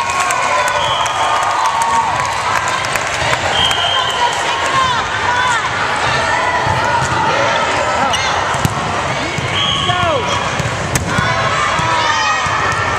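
Young girls call out and chatter in a large echoing hall.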